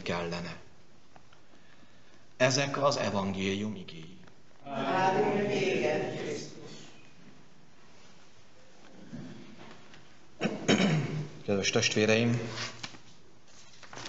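A middle-aged man speaks and chants through a microphone in a reverberant room.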